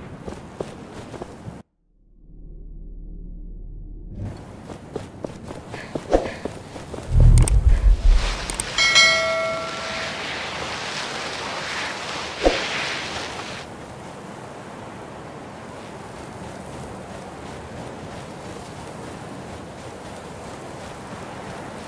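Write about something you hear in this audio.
Footsteps tread on stony ground.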